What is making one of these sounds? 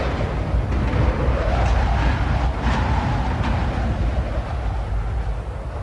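A helicopter's rotor whirs as the aircraft spins out of control.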